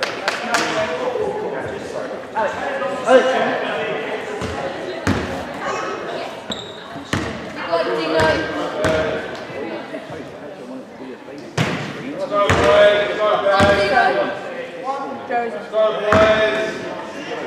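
Young people in a crowd chatter and call out.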